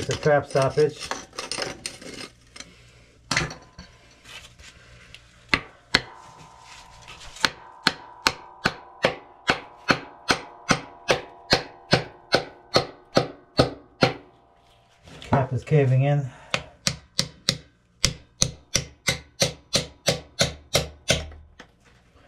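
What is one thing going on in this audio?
A metal hammer strikes a pipe again and again with sharp, ringing blows.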